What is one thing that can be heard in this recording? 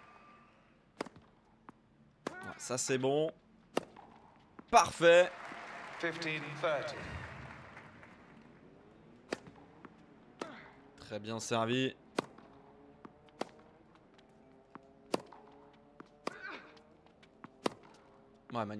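A tennis ball is struck sharply back and forth.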